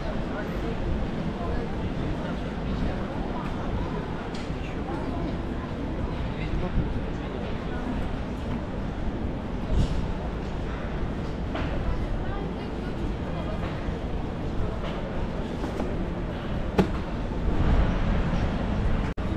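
A busy pedestrian street hums with the murmur of many people talking at a distance.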